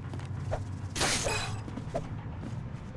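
A magic burst hums and shimmers.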